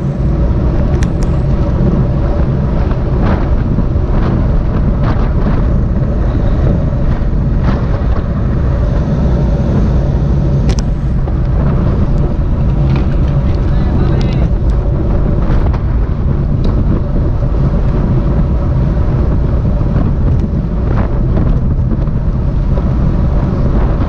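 Strong wind roars steadily across a moving bike.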